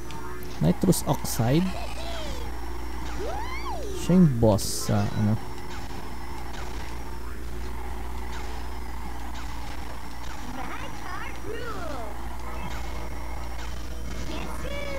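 A kart engine whines steadily in a racing game.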